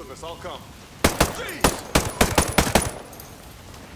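A rifle fires several loud shots in quick succession.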